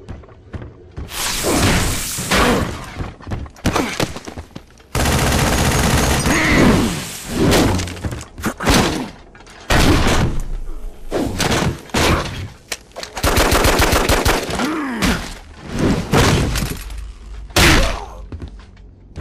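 Heavy blows and metal impacts thud and clang in a fight.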